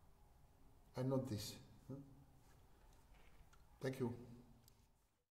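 An elderly man speaks calmly in short bursts, close by.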